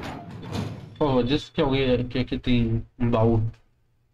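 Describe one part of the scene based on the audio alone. A heavy metal door creaks open.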